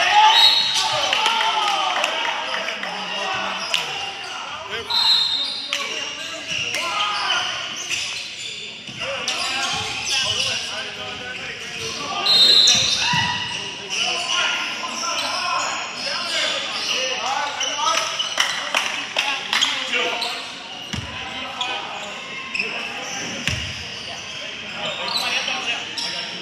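Young men shout and talk across a large echoing gym.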